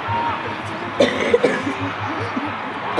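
Young men shout to each other outdoors on an open field.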